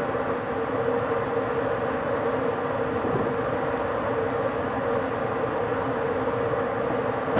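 A train rumbles steadily along the rails at speed.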